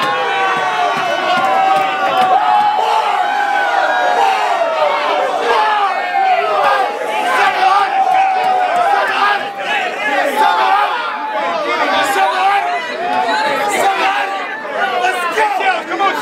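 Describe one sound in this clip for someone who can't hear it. A man raps loudly into a microphone over a loudspeaker.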